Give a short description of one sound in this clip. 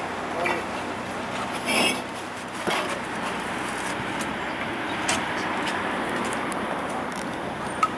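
Tools knock and scrape in the dirt.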